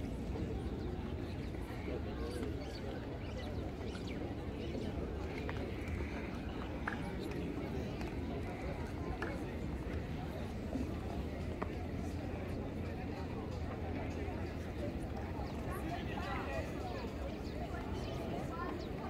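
A crowd murmurs at a distance, outdoors in light wind.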